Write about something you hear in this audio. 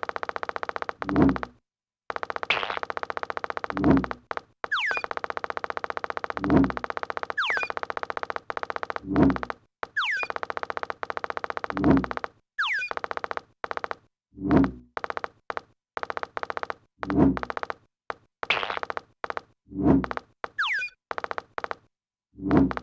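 A little game figure pops up from a sack with a soft thump, again and again.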